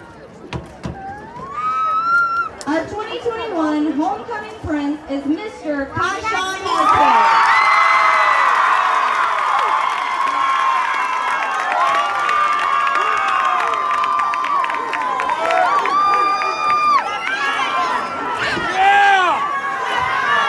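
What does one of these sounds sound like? Young women shout and squeal excitedly close by.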